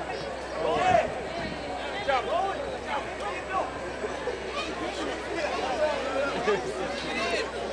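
A crowd of men and women chatters and shouts nearby outdoors.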